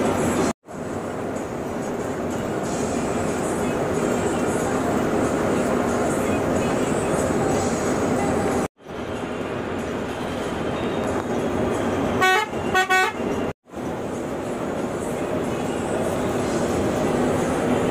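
An engine hums steadily as a vehicle drives along a road.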